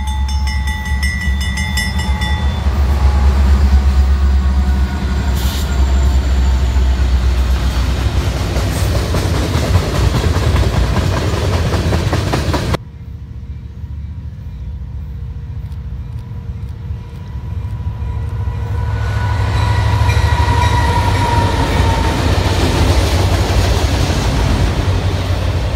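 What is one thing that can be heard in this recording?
Freight car wheels clatter and squeal along the rails.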